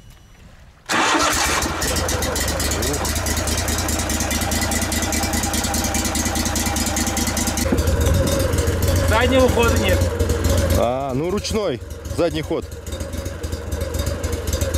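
A boat's outboard motor runs with a steady drone.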